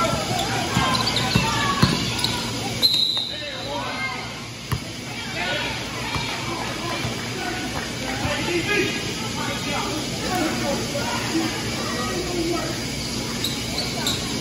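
Sneakers squeak and shoes thud on a wooden court in a large echoing gym.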